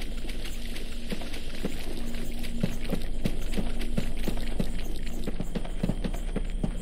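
Footsteps splash steadily through shallow water.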